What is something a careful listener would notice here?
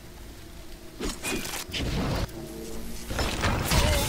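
Electricity crackles and buzzes in short bursts.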